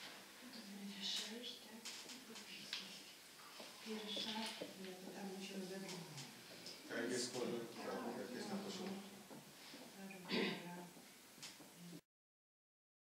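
A middle-aged man speaks calmly across a table in a room with a slight echo.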